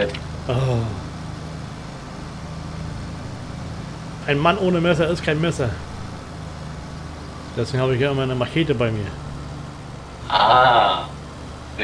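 A man speaks calmly and casually into a close microphone.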